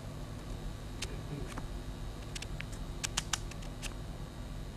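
Paper pages flip softly with small clicks.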